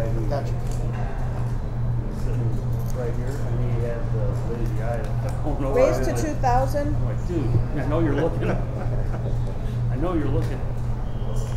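Men talk and laugh nearby.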